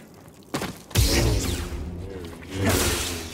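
A lightsaber ignites with a loud hum.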